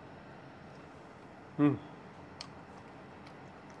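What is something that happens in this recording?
A man crunches on a crisp pea pod.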